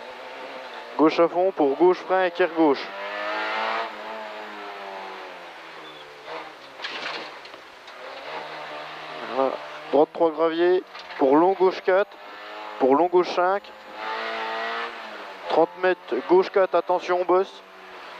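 A man reads out pace notes quickly over an in-car intercom.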